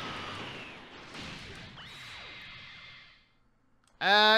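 An energy blast whooshes and hums.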